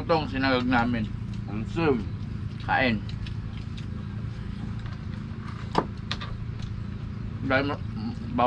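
Young men and a young woman talk casually close by.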